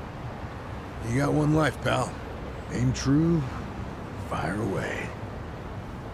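An older man speaks with a low, gravelly voice.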